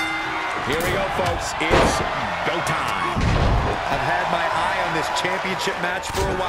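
Wrestlers' bodies slam and thud against the ring.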